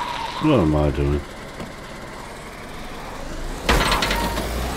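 A car crashes against a wall with a loud thud.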